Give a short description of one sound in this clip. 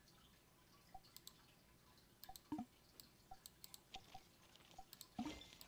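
Game interface clicks and chimes sound briefly.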